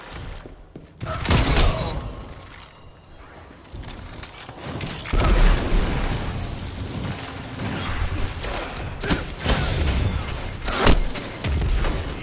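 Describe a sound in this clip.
A gun fires loud blasts.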